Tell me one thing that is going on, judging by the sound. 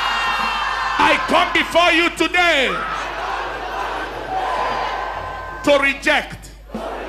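A man shouts loudly with fervour.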